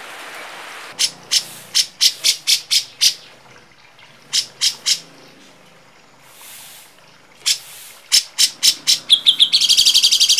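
A bird chirps in quick, sharp bursts.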